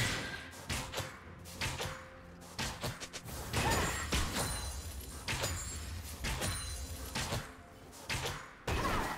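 Magical spells blast and crackle in a hectic fantasy battle.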